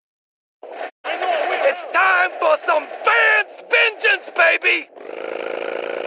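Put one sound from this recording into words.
A man speaks loudly and boldly.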